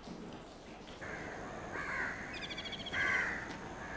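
Footsteps crunch on a dirt road outdoors.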